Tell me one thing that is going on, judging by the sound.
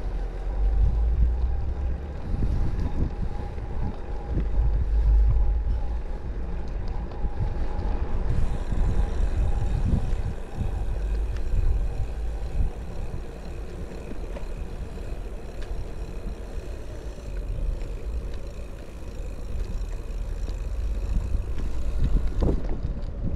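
Footsteps tread on a paved path.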